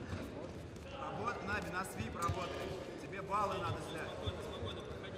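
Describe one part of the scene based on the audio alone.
Men in a crowd shout loudly.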